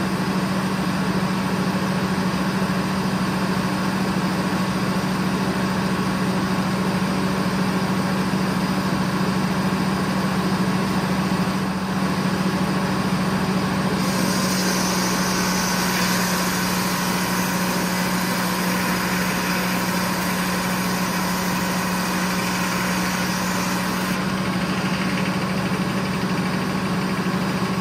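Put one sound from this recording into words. A sawmill engine drones loudly and steadily.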